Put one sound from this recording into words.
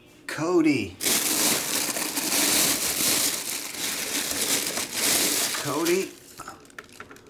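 A plastic bag rustles and crinkles loudly as it is pulled away.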